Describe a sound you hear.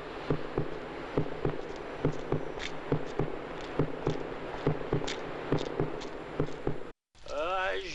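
Footsteps walk steadily on pavement.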